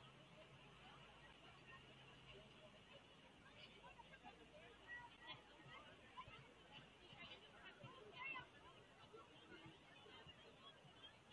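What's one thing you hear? A crowd of spectators chatters faintly in the distance, outdoors.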